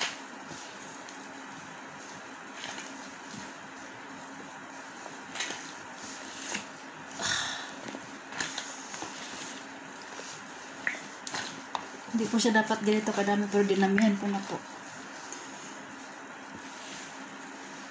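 Hands squish and mix a wet, lumpy mixture.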